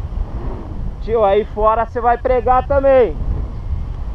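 A man calls out close to the microphone.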